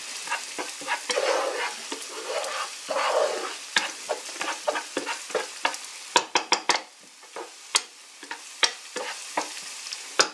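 Onions sizzle in a hot pan.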